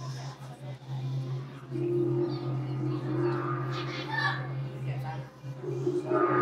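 Children chatter and murmur in an echoing hall.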